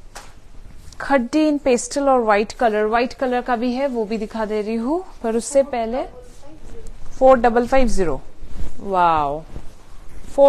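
A young woman speaks close by, calmly.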